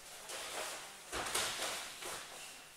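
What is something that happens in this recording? A body thumps onto a padded mat.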